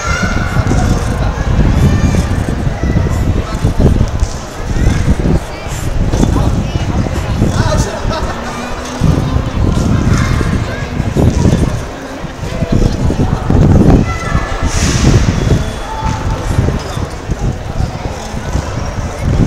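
A crowd chatters and murmurs outdoors.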